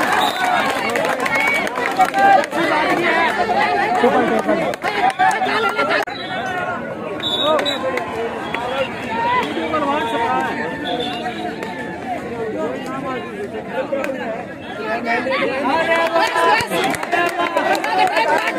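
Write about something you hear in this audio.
A large outdoor crowd cheers and shouts.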